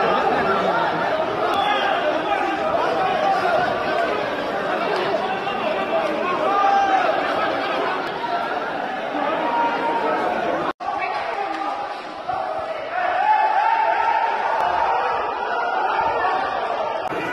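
A crowd of men shout and yell angrily in a scuffle nearby.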